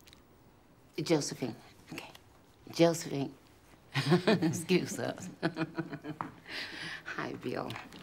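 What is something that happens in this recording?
A middle-aged woman speaks cheerfully, close by.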